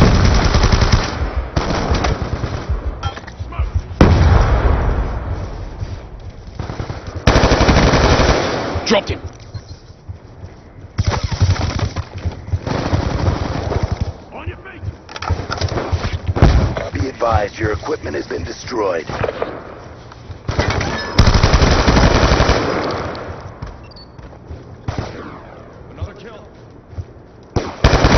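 Automatic rifles fire in rapid, loud bursts.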